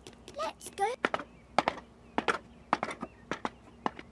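Footsteps tap quickly on ladder rungs.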